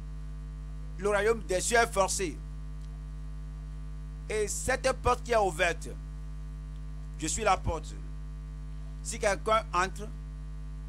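An elderly man preaches forcefully into a microphone, in short bursts with pauses.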